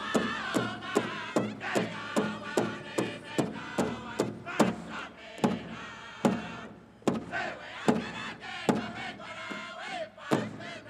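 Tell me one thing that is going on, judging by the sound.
A drum booms in a steady, even beat in a large echoing hall.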